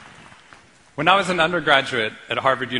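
A man speaks calmly to an audience through a microphone in a large hall.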